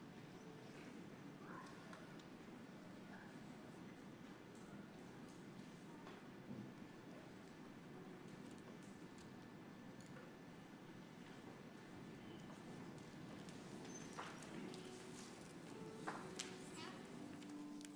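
A crowd murmurs and chatters quietly in a large echoing hall.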